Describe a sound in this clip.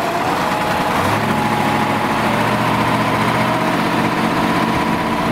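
A truck engine rumbles steadily close by.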